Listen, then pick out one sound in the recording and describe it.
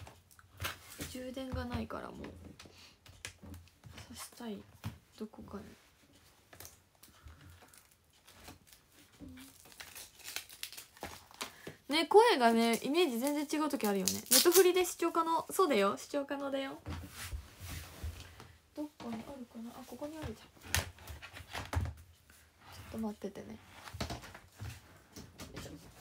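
A young woman speaks close by, softly at times and with animation at others.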